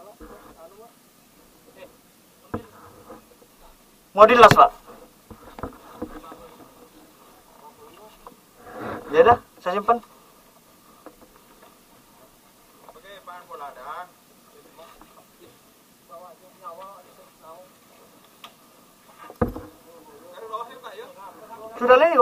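Men talk and call out to each other nearby outdoors.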